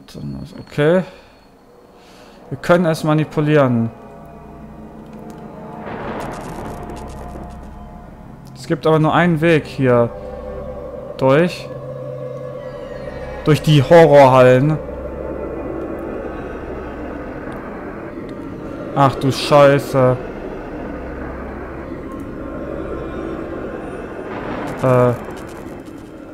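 A young man speaks in short bursts, close to a microphone.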